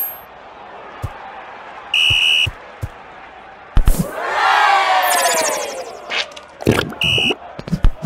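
A ball is kicked with short thuds.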